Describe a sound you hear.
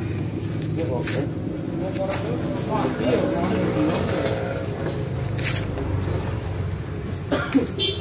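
Metal tools clink and scrape against a motorcycle wheel.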